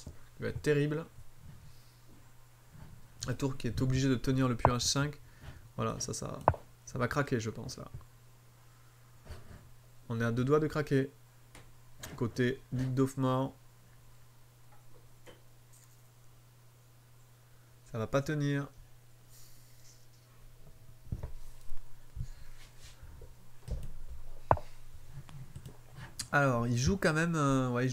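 A man talks calmly in short bursts, close to a microphone.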